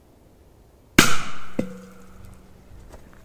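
A firecracker bangs loudly under a metal can.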